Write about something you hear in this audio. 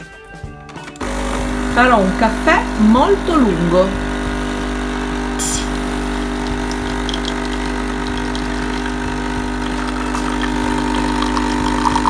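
A coffee machine hums and whirs steadily.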